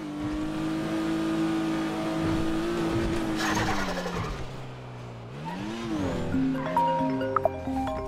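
A car engine revs and drops as a car speeds along.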